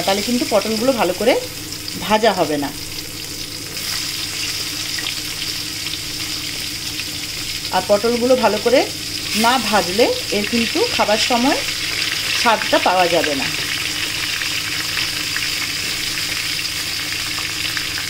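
Oil sizzles and crackles steadily in a hot pan.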